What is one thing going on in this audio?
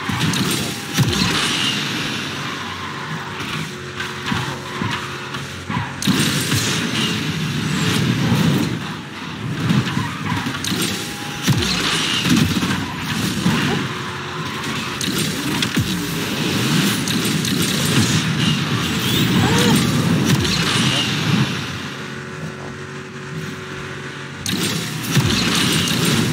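A race car engine roars and revs loudly.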